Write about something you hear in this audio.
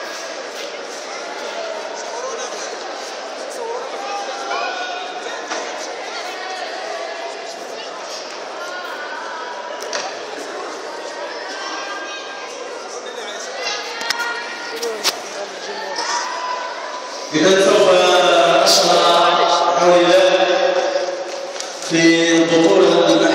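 Many children and adults chatter in a large echoing hall.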